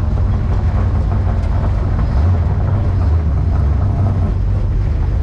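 A race car engine rumbles loudly up close as the car rolls slowly.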